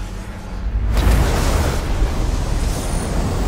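A magical burst whooshes loudly and suddenly.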